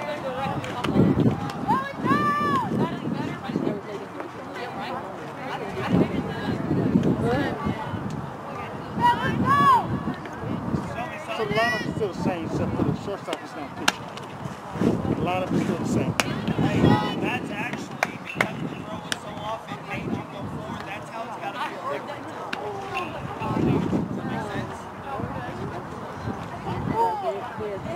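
Young women shout and cheer loudly across an open field.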